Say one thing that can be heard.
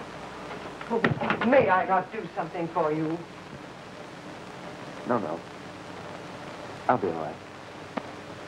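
A woman speaks urgently close by.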